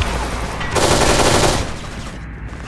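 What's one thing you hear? Rapid gunfire rattles close by.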